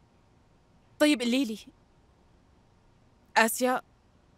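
A woman speaks calmly into a phone close by.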